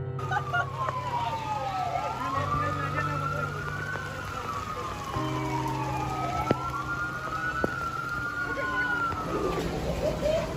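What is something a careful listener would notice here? Heavy rain pours down outdoors.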